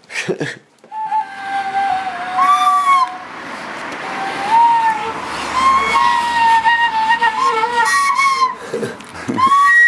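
A bamboo flute plays a wavering melody.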